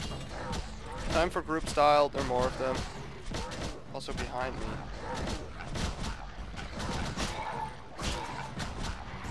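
A sword swings and strikes with sharp clashing hits.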